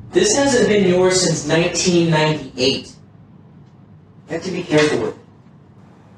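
A girl speaks calmly nearby.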